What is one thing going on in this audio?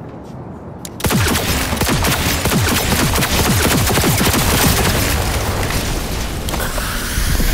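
A heavy gun fires a rapid burst of loud shots.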